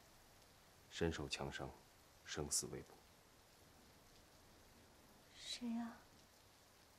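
A young woman speaks in a shocked, quiet voice.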